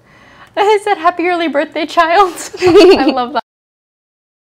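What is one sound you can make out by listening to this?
A young woman speaks brightly and with animation close to a microphone.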